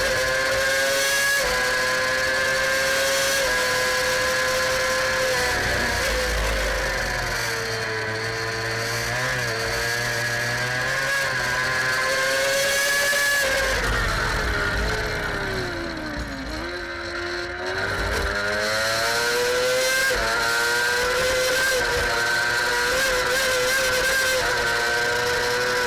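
A racing engine screams loudly close by, its pitch rising through the gears and dropping as it slows into corners.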